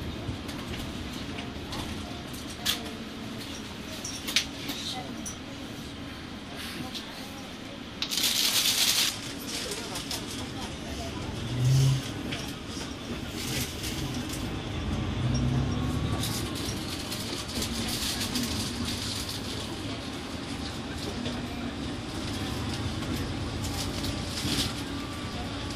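Tyres roll on the road beneath a bus.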